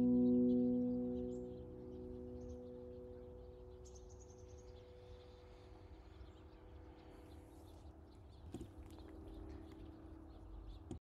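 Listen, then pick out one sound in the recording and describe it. A handpan rings out with soft, sustained metallic notes that slowly fade.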